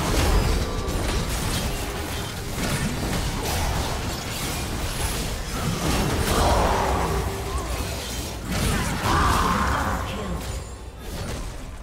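Magic blasts and weapon hits clash rapidly in a game battle.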